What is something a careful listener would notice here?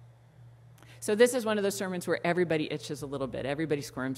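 A middle-aged woman speaks calmly through a microphone in an echoing hall.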